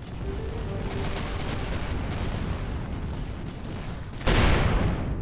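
Guns fire in rapid bursts with a low rumbling roar.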